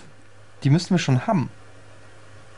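A young man speaks a few words loudly and with animation, close to a microphone.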